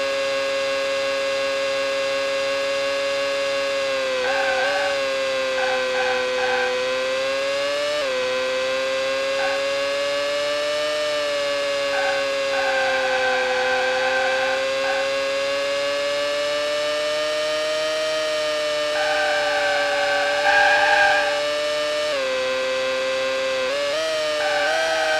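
A racing car engine drones at high revs, dipping briefly with each gear change.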